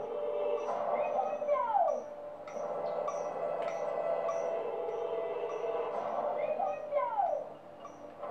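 A magic spell whooshes with a falling sparkle.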